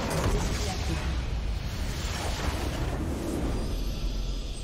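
A game structure explodes with a loud, rumbling blast.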